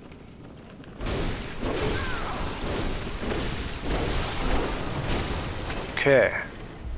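Blades slash and clash in a fierce fight.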